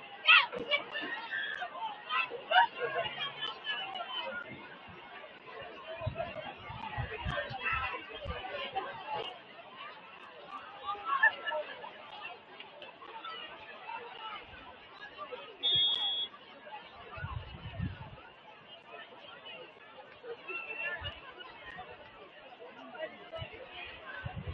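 A crowd of spectators cheers and shouts across an open outdoor field.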